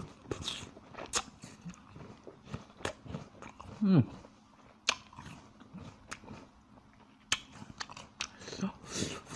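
A young man chews food wetly and loudly, close to a microphone.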